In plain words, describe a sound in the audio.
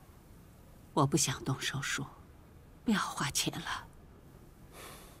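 A middle-aged woman speaks softly, close by.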